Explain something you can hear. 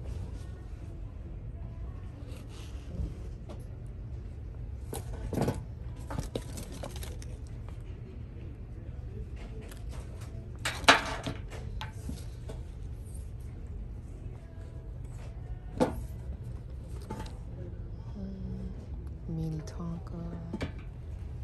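Slippers rustle and bump softly as a hand handles them.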